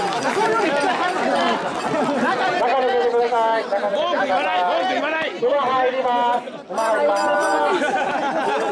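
A crowd of men chant loudly and rhythmically close by.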